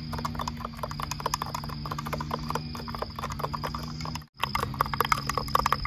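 Straws stir ice in glasses of juice, clinking against the glass.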